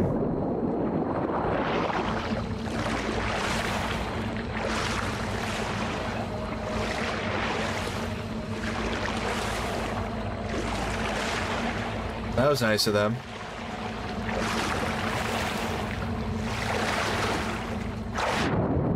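Footsteps splash through shallow water at a steady pace.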